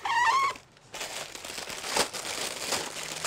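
Plastic packets rustle and crinkle.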